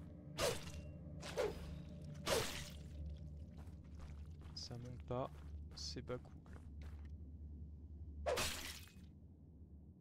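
Game sound effects whoosh and hit.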